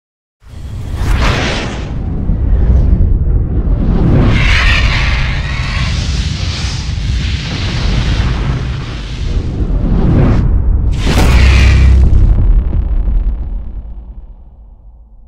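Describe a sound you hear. Flames whoosh and roar in rushing bursts, then fade away.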